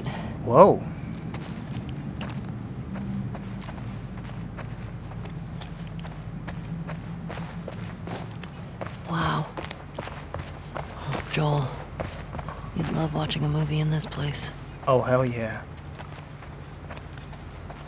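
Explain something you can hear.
Footsteps walk slowly.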